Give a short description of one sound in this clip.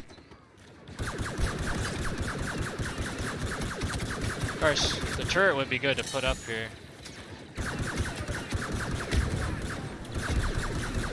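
Blaster guns fire in rapid bursts amid loud battle noise.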